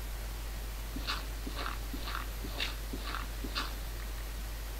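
Blocks of earth crunch as they are dug and placed.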